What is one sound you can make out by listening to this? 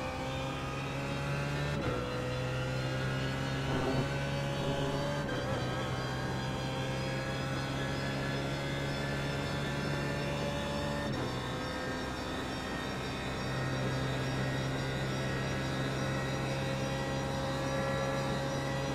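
A race car engine roars loudly at high revs.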